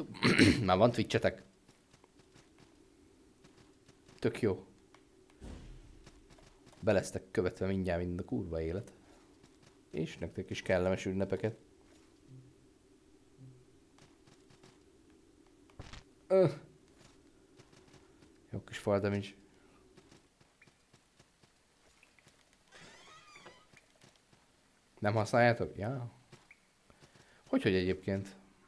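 A man talks casually into a close microphone, in bursts with pauses.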